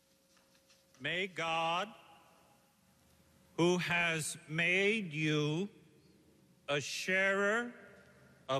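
A man chants slowly through a microphone in a large echoing hall.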